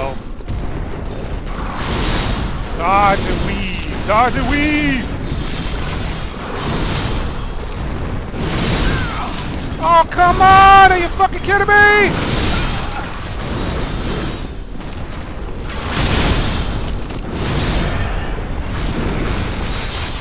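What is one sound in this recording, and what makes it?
Heavy thuds and rumbles boom throughout.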